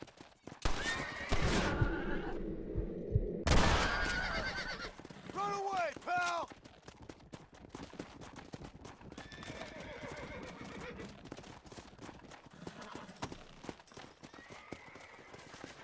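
A horse's hooves gallop over grass.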